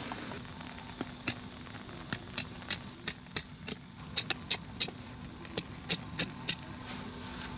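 A hammer knocks a tent peg into the ground with sharp, regular taps.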